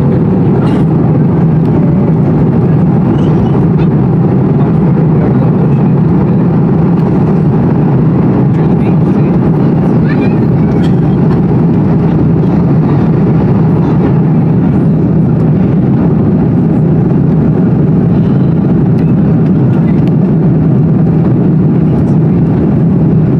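Jet engines roar loudly and steadily, heard from inside an airliner's cabin.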